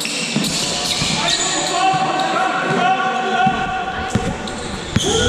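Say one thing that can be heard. A basketball bounces with dull thuds on the court.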